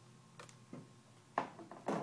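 A hand taps on a laptop keyboard.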